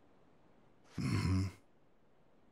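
A man grunts gruffly.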